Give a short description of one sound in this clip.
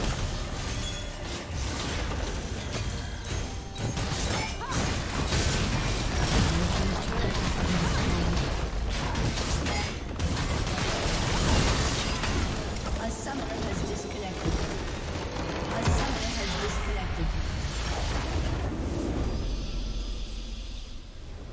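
Spell blasts and hits crash and thud in a fast game battle.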